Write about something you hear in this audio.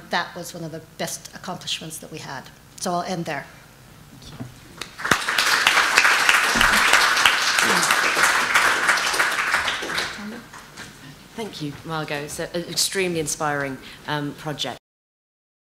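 A woman speaks calmly into a microphone in a large room.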